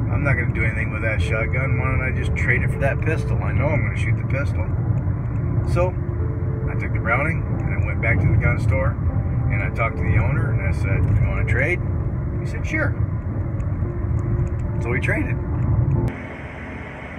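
A car's engine and tyres rumble low and steady on the road.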